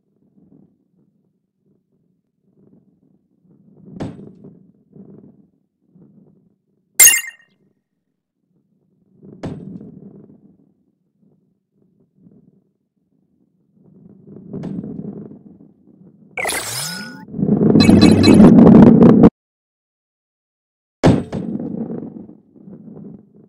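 A heavy ball rolls and rumbles, bumping now and then.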